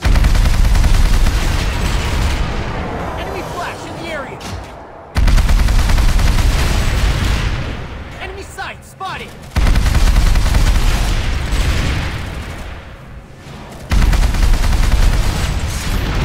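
Twin heavy machine guns fire in long, roaring bursts that fade out between pauses.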